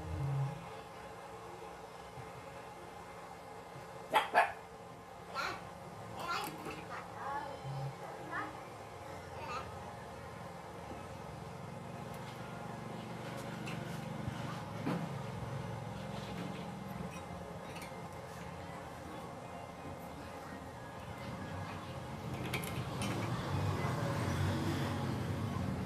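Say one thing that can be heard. Metal clanks and knocks as a steel bar is bent in a hand bender.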